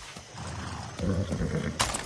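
A horse whinnies close by.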